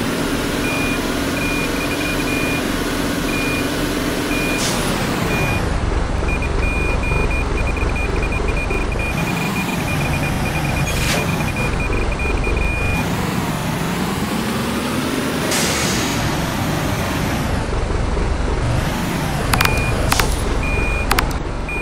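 A truck engine rumbles steadily, its pitch rising and falling as it revs.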